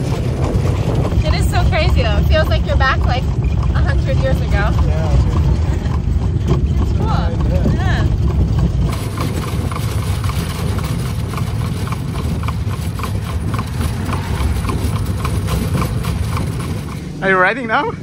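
A carriage rumbles and rattles along a road.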